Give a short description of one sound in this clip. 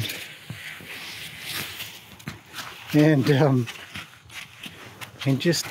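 Hooves thud softly on sand.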